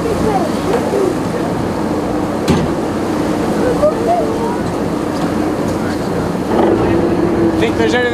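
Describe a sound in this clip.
Seabirds call over the sea.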